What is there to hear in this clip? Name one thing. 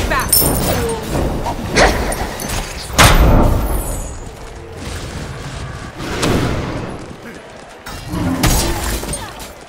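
Magic blasts and weapon strikes crackle and boom in quick bursts.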